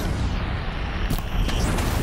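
Fire roars and crackles in bursts.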